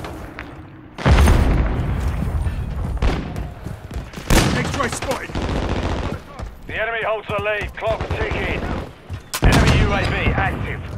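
A rifle fires loud shots in short bursts.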